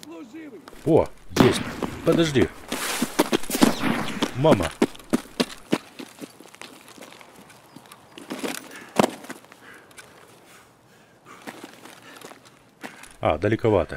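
Footsteps crunch on dirt and gravel outdoors.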